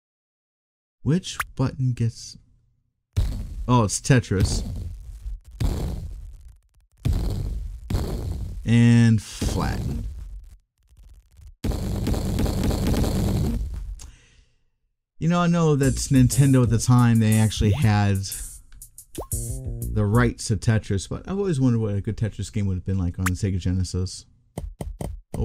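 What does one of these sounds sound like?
A man talks with animation into a headset microphone, close by.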